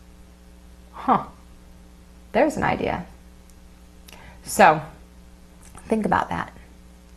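A woman speaks calmly into a close microphone, in short bursts.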